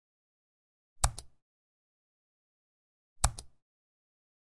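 A mouse button clicks twice.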